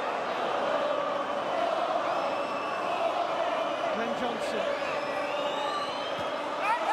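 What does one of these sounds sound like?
A large stadium crowd sings and chants loudly and steadily.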